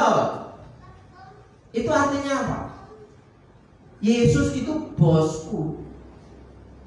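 A man preaches with animation through a microphone, in a large echoing hall.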